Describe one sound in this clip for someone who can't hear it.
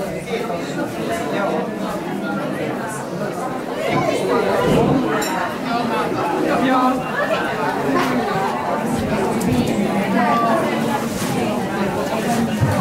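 A crowd of men and women chatter at close range.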